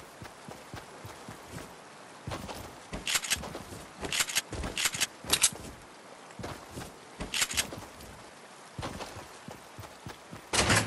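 Footsteps run quickly over grass and soft ground.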